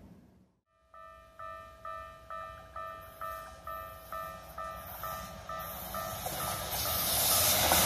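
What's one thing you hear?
A railway crossing bell rings in a rapid, steady beat.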